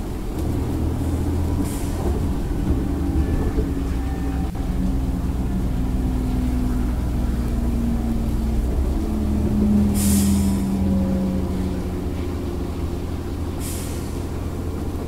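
Water splashes against a bow.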